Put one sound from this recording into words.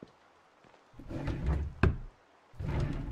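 A wooden drawer slides shut.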